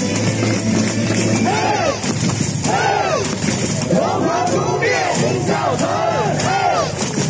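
A large crowd cheers and chants loudly in an open stadium.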